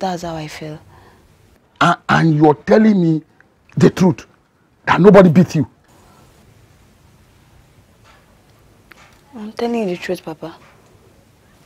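A young woman speaks with emotion close by.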